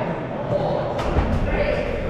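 A ball smacks sharply against a player.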